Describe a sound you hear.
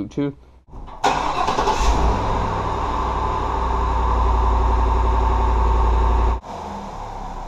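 A truck engine idles loudly nearby.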